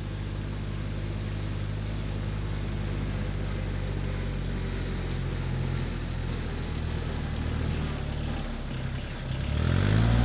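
A tractor engine chugs steadily nearby.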